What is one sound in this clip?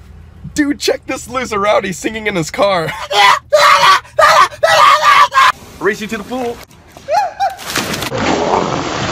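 A young man shouts with excitement in a car.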